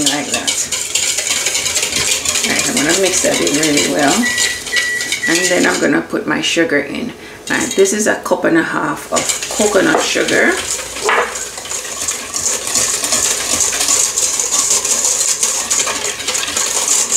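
A wire whisk clatters quickly against a metal bowl.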